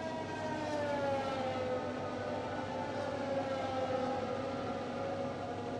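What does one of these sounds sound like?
A racing car engine whines at high pitch, its tone gliding slowly down and up as it speeds along.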